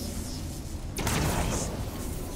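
A heavy thud sounds as something lands on a metal floor.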